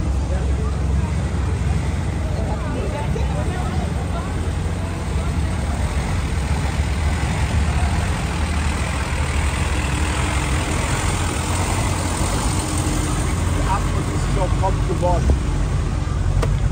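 An old bus engine rumbles slowly past.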